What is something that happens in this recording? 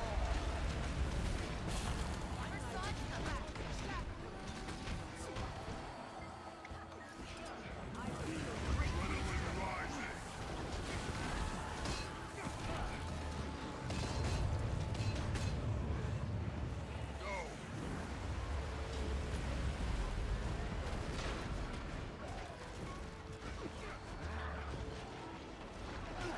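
Magic spells crackle and burst in a busy battle.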